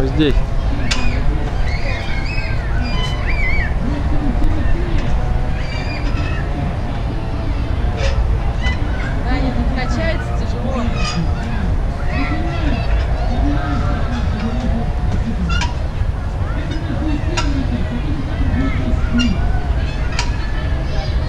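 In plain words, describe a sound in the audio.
Metal rings clink as a child swings along a climbing frame.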